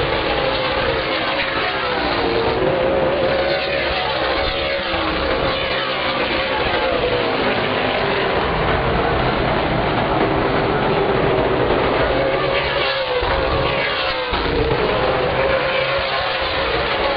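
Engines whine up and down in pitch as cars pass close by.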